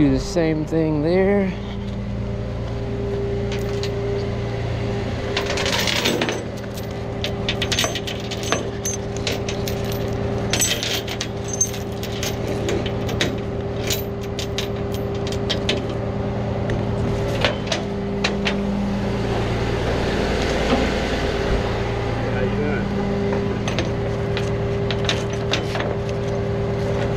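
A truck engine idles with a steady low hum.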